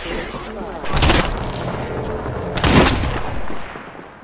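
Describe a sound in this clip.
A loud electric blast crackles and whooshes.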